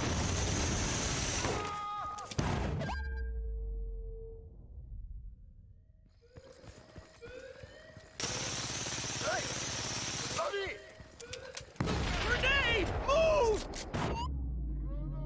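Gunfire bursts loudly, close by.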